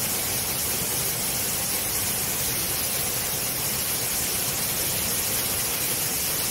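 A powerful jet of water gushes out with a loud, steady roar.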